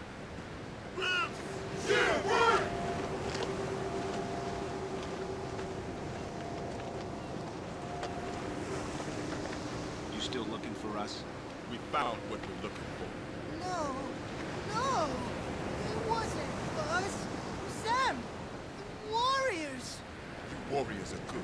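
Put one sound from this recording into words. A man speaks with a cocky, mocking tone.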